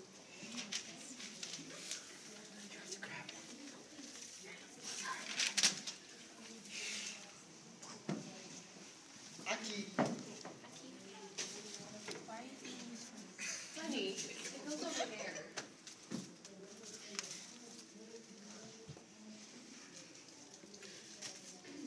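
Paper rustles and crinkles as young people handle it.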